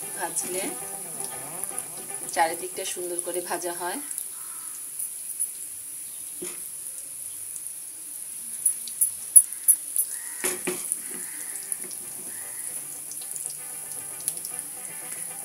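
Oil sizzles and crackles steadily in a hot pan.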